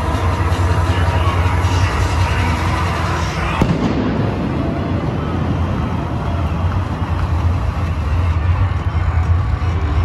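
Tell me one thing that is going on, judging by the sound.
A large stadium crowd roars and cheers in a big echoing space.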